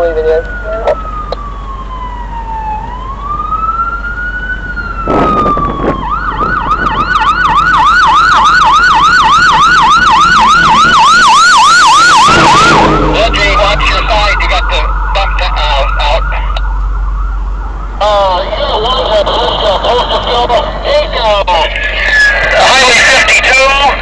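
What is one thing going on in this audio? A fire truck's siren wails and whoops as the truck approaches and passes close by.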